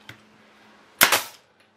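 A nail gun fires with a sharp bang.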